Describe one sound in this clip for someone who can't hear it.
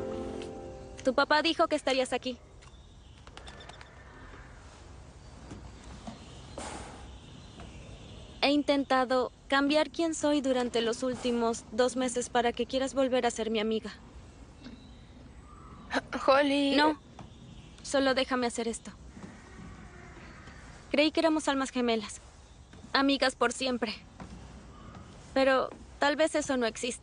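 A young girl speaks calmly nearby.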